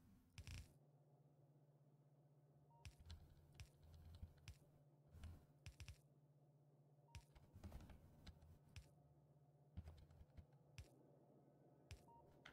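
Game building pieces click softly into place, one after another.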